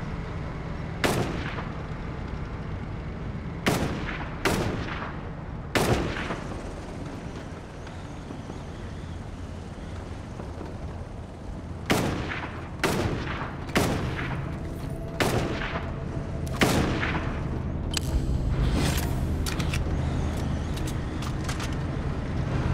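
Gunshots bang loudly, each with a short echo.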